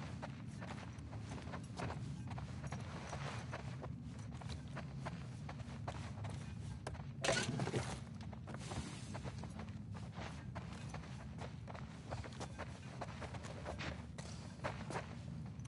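Footsteps fall on a soft indoor floor at a walking pace.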